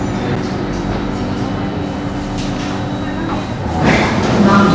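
A train car hums steadily while standing.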